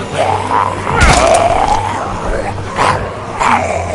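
Heavy blows thud and smash.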